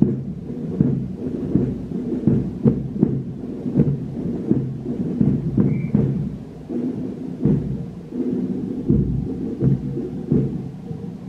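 A brass band plays a march outdoors.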